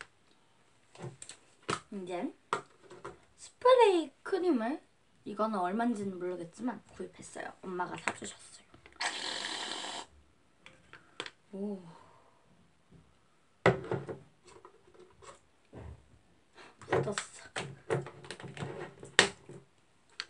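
A child talks animatedly nearby.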